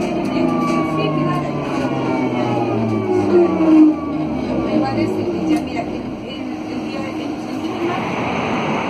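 A tram's motor whines, falling in pitch as the tram slows.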